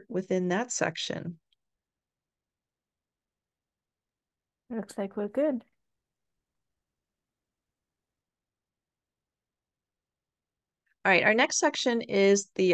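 An elderly woman speaks calmly into a microphone, pausing between phrases.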